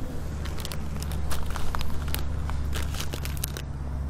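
A plastic bag of seeds crinkles.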